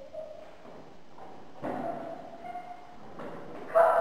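A wooden chair knocks and scrapes on a wooden floor.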